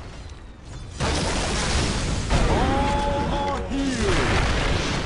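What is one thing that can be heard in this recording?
Spell effects whoosh and crackle in a fast game battle.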